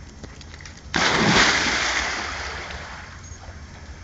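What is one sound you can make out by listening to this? A dog leaps into water with a loud splash.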